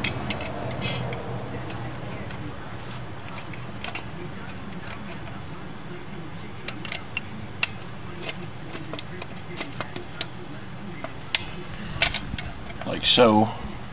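Metal springs click and clink as hands fit them onto a brake part.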